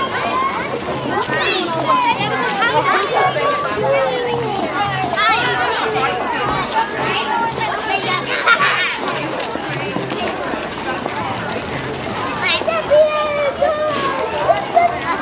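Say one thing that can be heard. Children shout and squeal excitedly nearby.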